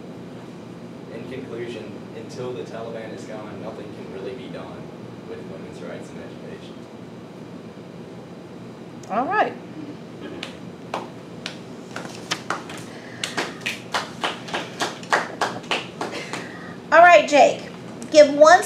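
A teenage boy speaks calmly to a small audience.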